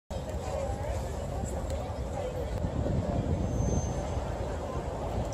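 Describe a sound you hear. A crowd of people murmurs and chatters outdoors.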